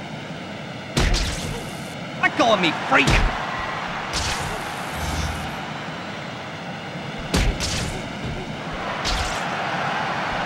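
Punches land with sharp thumps and whooshes.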